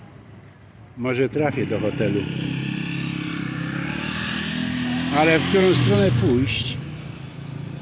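A motorcycle passes by on the street.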